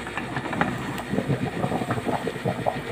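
A pot of rice bubbles and boils vigorously.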